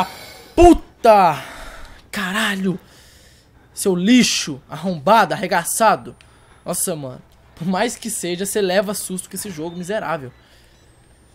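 A young man talks with animation into a headset microphone, close up.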